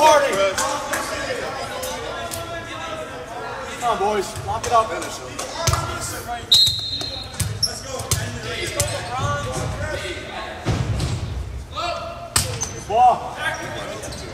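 Young players call out and shout across a large echoing gym.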